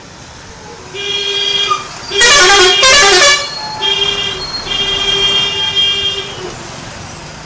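A truck horn honks loudly, again and again.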